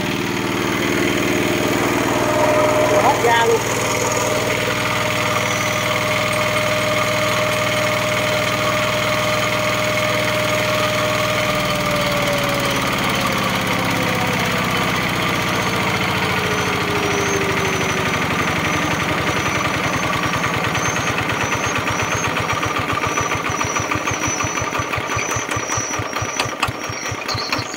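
A single-cylinder diesel engine runs close by with a loud, steady chugging.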